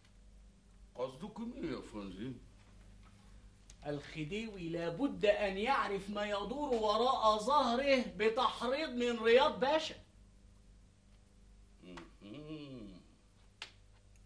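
A man speaks forcefully and with animation, close by.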